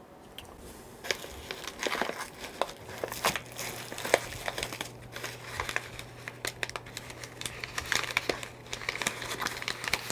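Paper and packaging rustle and crinkle as they are handled.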